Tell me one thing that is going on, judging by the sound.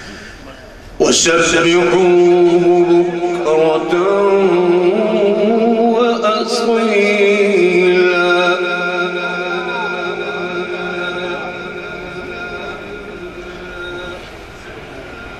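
A man chants in a long, drawn-out voice through a microphone and loudspeakers, echoing loudly.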